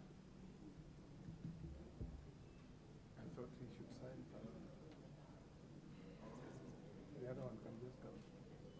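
A crowd of men murmurs quietly in the background.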